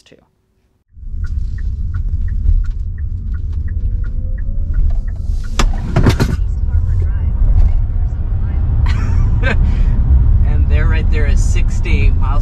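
Road noise rumbles steadily inside a moving car.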